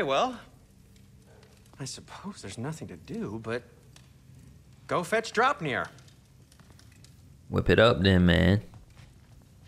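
A man speaks calmly, heard through a microphone.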